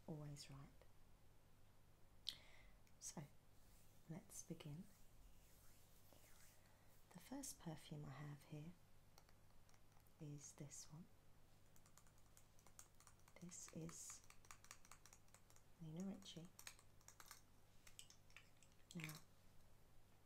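A woman speaks calmly and close up, heard through a microphone.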